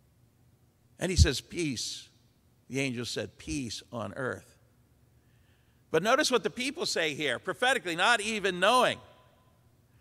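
An older man preaches into a microphone with animation, in pauses.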